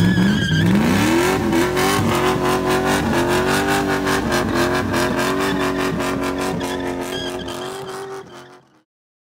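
Tyres squeal and spin on the road.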